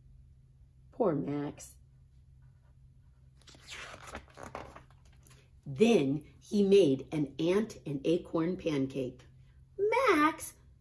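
A woman reads aloud with expression, close to a microphone.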